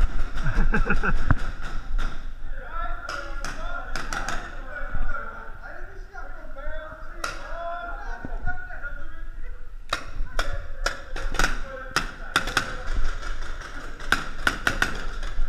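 Paintball guns fire in quick bursts of sharp pops, echoing in a large hall.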